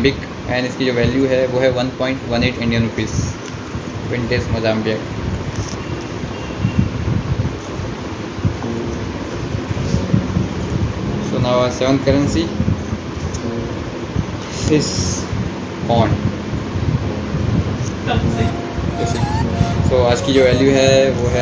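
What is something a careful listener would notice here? A young man talks close by in a lively voice.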